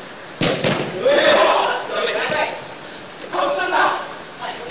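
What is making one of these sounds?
Players shout to each other across a large echoing hall.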